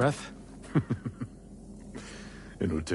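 A middle-aged man chuckles softly.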